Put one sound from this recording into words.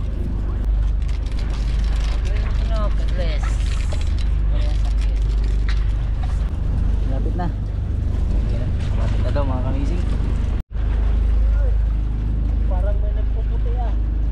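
A man talks loudly outdoors over the wind.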